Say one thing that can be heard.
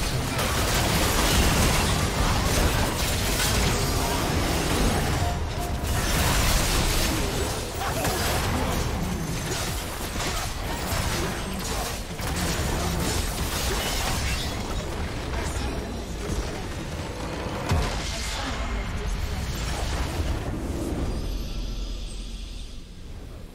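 Game spell effects and attacks crackle and clash in a busy battle.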